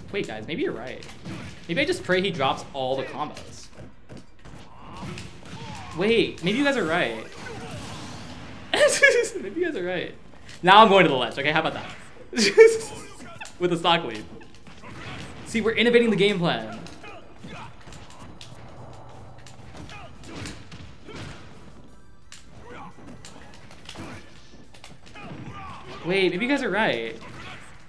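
Video game fighters clash with punches and blasts.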